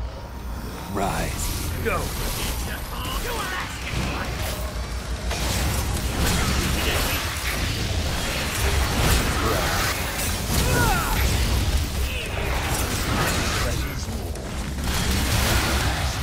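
Monsters screech and snarl.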